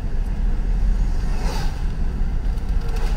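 A van passes by in the other direction.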